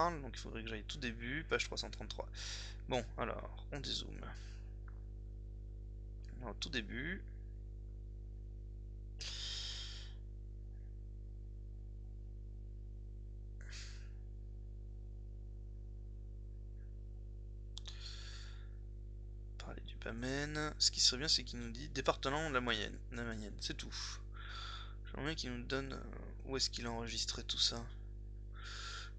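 A young man talks calmly into a close microphone, with pauses.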